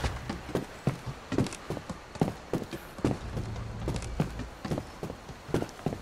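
Hands and feet climb a wooden ladder.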